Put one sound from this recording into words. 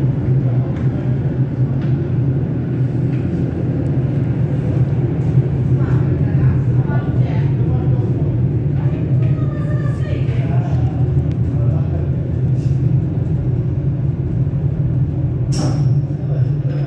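Train wheels click over rail joints.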